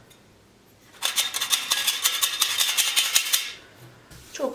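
A shaker rattles as flour is sprinkled.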